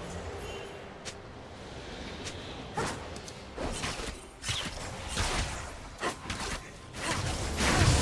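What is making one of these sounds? Sharp zaps and swishes of spells come in short bursts.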